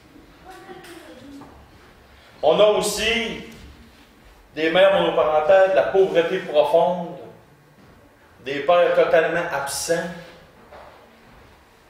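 A middle-aged man speaks calmly and clearly into a nearby microphone, in short bursts with pauses.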